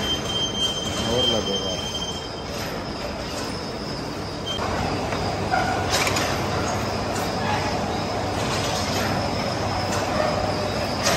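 A vertical lathe runs with a steady mechanical rumble.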